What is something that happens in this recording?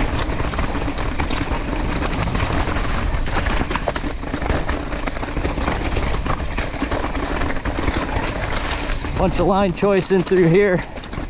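A bicycle's frame and chain clatter over bumps.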